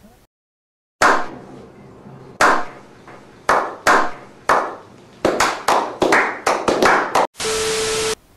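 A group of men clap their hands slowly.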